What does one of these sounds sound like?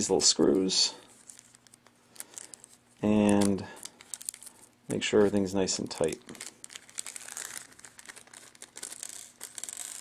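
Fingers fiddle with small plastic parts, rustling and clicking softly.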